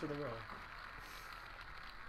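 A prize wheel spins with rapid clicking ticks.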